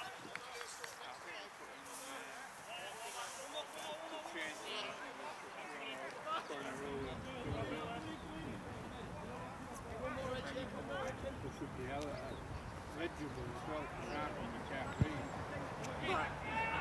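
Young women shout to each other across an open field outdoors.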